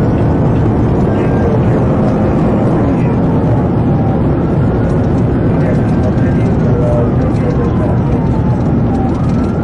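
A car drives at high speed, with a heavy roar of tyres and wind heard from inside.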